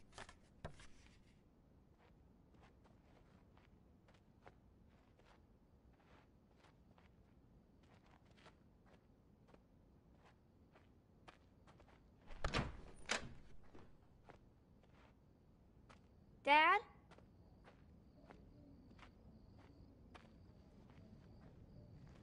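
Soft footsteps pad steadily across a floor.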